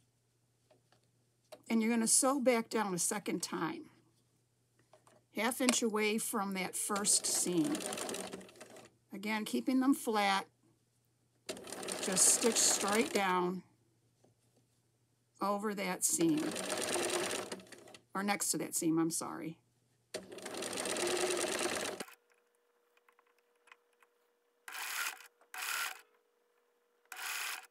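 A sewing machine rattles as it stitches through thick rope.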